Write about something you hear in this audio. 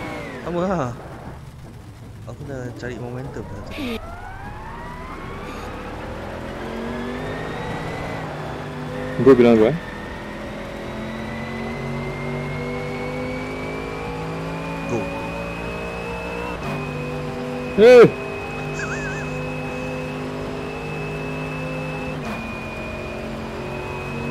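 A racing car engine revs hard, rising in pitch through the gears.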